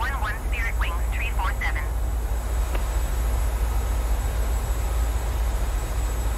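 Jet engines drone with a steady low rumble.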